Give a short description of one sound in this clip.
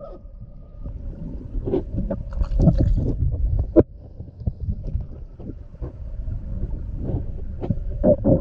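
Water sloshes and bubbles around an underwater microphone.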